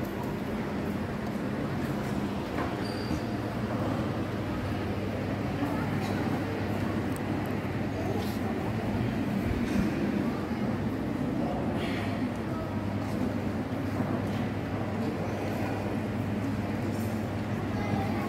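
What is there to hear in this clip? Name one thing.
A large congregation sings together in a big echoing hall.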